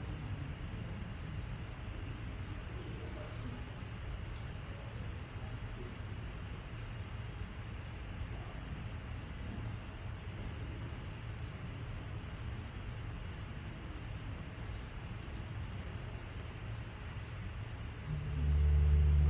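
A small congregation murmurs quietly in a large echoing hall.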